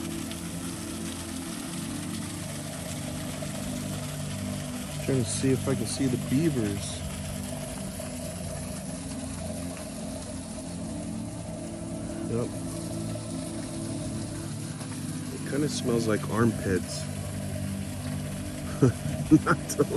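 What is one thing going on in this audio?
A small waterfall splashes gently into a pond.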